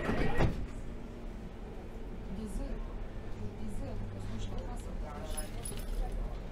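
A subway train rumbles steadily along the track.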